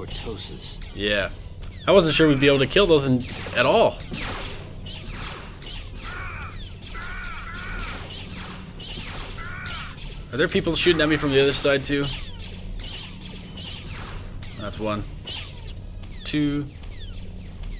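A lightsaber swooshes as it swings.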